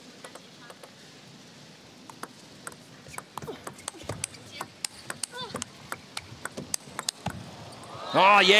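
A table tennis ball clicks quickly back and forth off paddles and a table.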